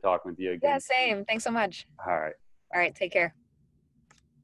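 A young woman speaks cheerfully over an online call.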